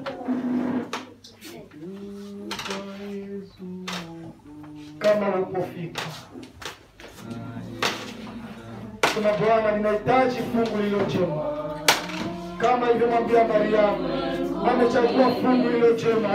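A man sings into a microphone, heard through loudspeakers in an echoing hall.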